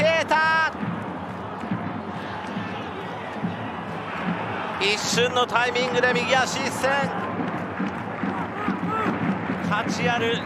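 A stadium crowd roars and cheers throughout.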